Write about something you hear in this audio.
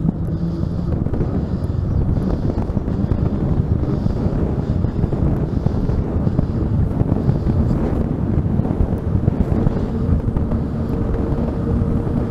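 Wind roars and buffets steadily against a fast-moving rider.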